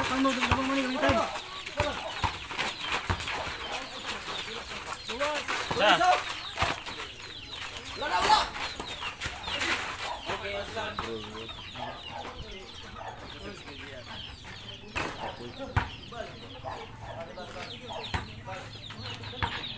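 A basketball bounces on hard dirt.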